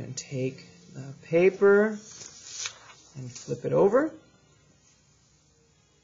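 Paper rustles as a sheet is moved.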